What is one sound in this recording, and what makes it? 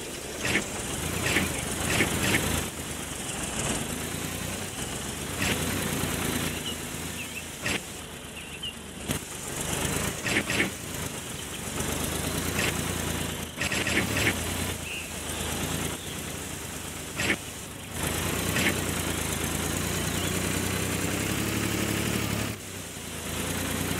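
A car engine hums steadily as a vehicle drives along a road.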